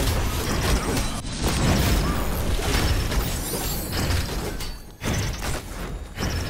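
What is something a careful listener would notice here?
Game spells crackle and blast in a fight.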